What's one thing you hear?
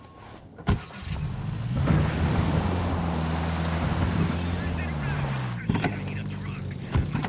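A car engine starts and rumbles as the car drives off over a dirt road.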